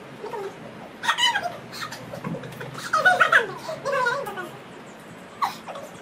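A young girl laughs close by.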